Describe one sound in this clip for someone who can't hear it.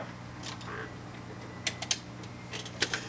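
A button on a small device clicks a few times.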